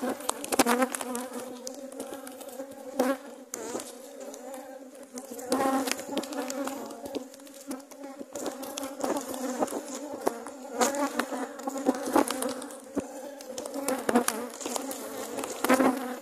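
A metal hive tool scrapes and knocks against wooden hive frames.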